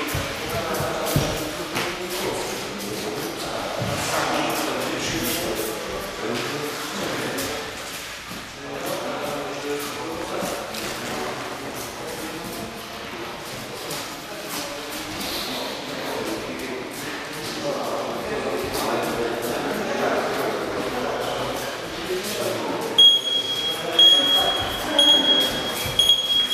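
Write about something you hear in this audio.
Feet shuffle and thud softly on a padded floor.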